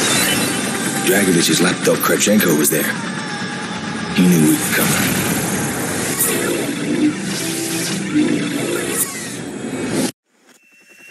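A man speaks tensely.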